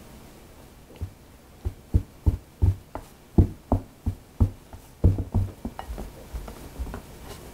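A spatula knocks and scrapes against a glass bowl.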